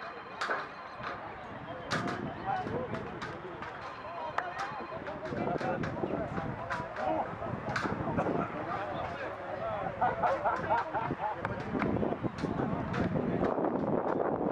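Players shout to each other across an open field in the distance.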